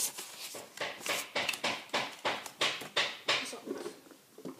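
A young boy talks quickly and close by.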